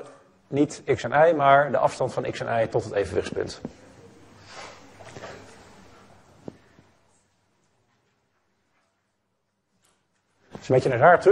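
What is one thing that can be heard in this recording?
A young man lectures calmly into a microphone.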